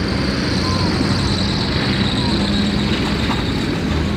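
A military vehicle engine roars past close by.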